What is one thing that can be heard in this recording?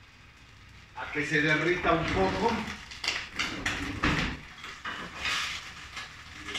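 Food sizzles in a pan.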